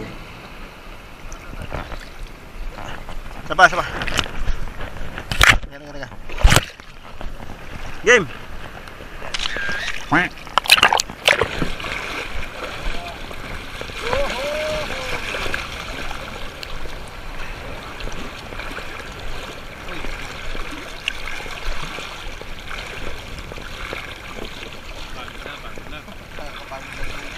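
Water laps and splashes close by.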